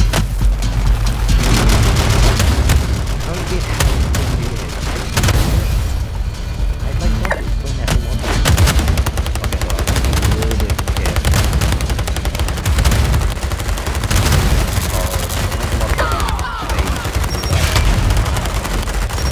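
Game cannons fire with repeated booms and blasts.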